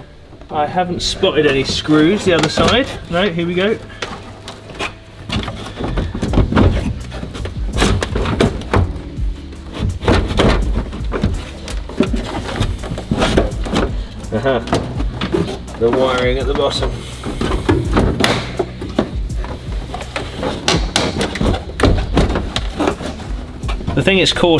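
Plastic parts knock and rattle as a man works on them by hand.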